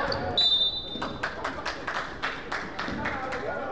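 A basketball bounces repeatedly on the court.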